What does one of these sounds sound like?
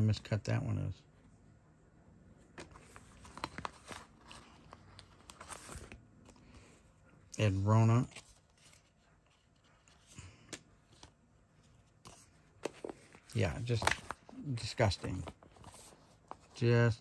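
Plastic card sleeves rustle and crinkle as they are handled.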